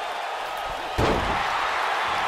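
A body slams hard onto a wrestling ring mat.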